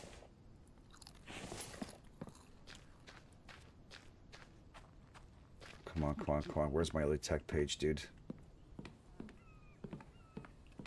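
Footsteps tread steadily on hard ground and wooden floors.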